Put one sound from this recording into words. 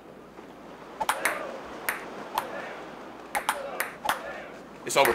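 A ping pong ball clicks sharply off paddles and a table.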